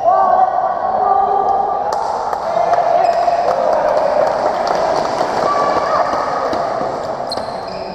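A crowd of spectators murmurs in the background.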